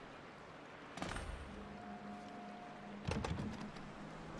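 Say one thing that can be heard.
A metal gate clanks open.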